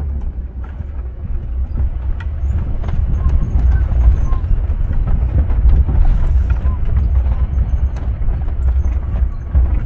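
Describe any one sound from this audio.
Tyres crunch and rattle over a rough dirt road.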